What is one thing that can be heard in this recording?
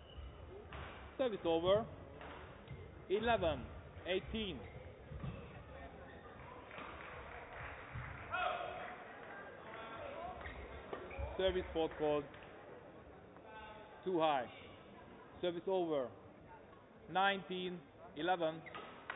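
Young players shout out loud in an echoing hall.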